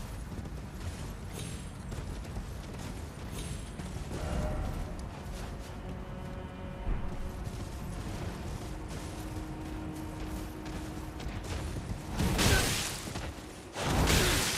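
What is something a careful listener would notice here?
Horse hooves clop steadily on rock.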